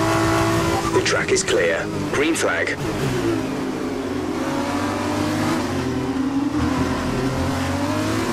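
A racing car engine drops in pitch as it slows down for a corner.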